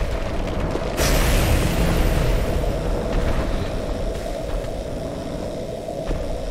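Lightning crackles and buzzes loudly.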